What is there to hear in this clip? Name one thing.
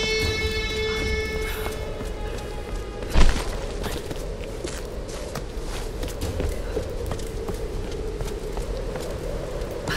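Footsteps crunch and scrape on stone.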